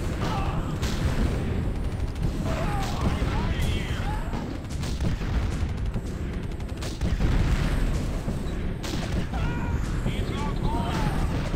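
Gunfire and explosions rumble and crack steadily.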